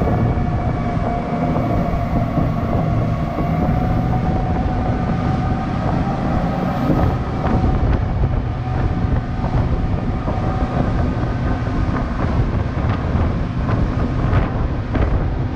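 Outboard motors drone steadily at speed.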